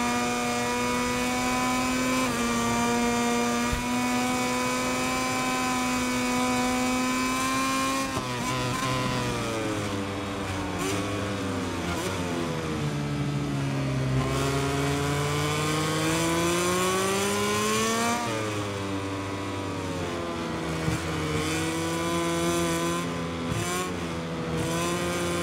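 A motorcycle engine screams at high revs, dropping in pitch as it slows for corners and rising again as it speeds up.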